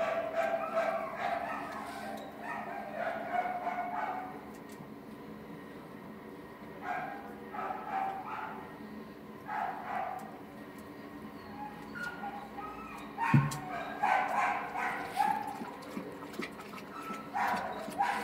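A hand strokes and pats a dog's short fur.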